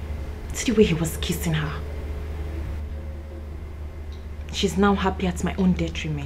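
A woman speaks with feeling, close to a microphone.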